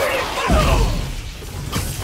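A loud electric zap crackles.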